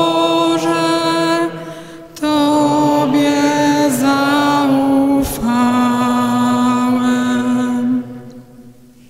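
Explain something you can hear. A girl sings slowly through a microphone in a large echoing hall, holding long notes.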